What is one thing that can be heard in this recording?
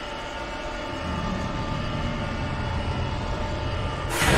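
A deep rumble swells.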